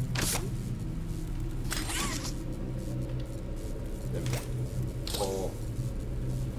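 Sharp electronic whooshes sound from a video game.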